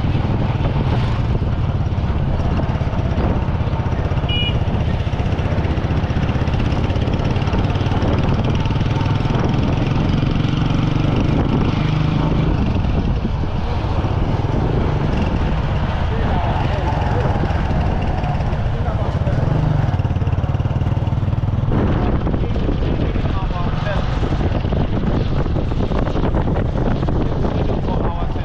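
A motorcycle engine rumbles steadily up close as it rides along.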